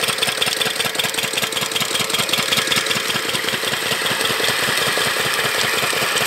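A motor pump chugs with a fast, steady beat.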